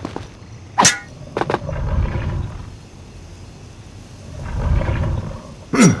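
Feet scuff and thud against a stone wall.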